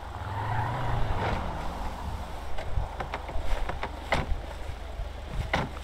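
A car engine hums as a car drives along a road.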